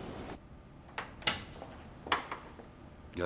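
Footsteps click on a hard floor.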